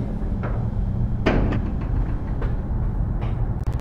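A heavy wooden door thuds shut.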